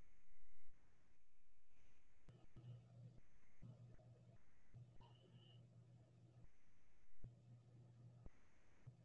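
A woman speaks faintly through an online call.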